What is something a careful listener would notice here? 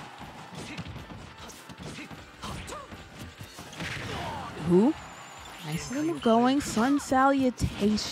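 Video game fighters trade blows with punchy hit and whoosh effects.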